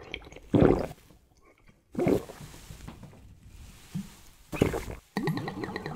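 A man gulps and swallows.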